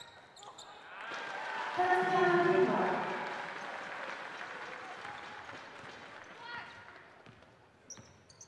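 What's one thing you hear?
A crowd cheers loudly in a large echoing arena and slowly fades.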